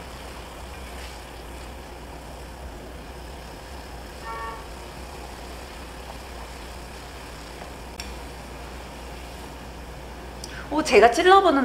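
Water bubbles at a low boil in a pot.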